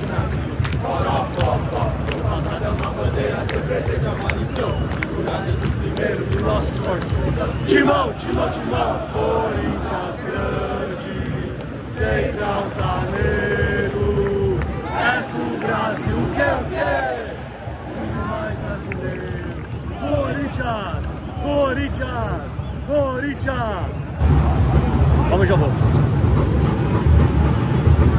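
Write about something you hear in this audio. A large stadium crowd sings and chants loudly all around, echoing in a vast open space.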